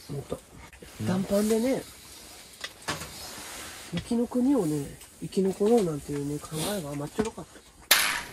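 A woman speaks close by in a lilting, sing-song voice.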